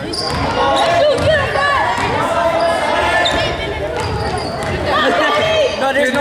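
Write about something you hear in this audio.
A crowd of spectators murmurs and calls out in a large echoing hall.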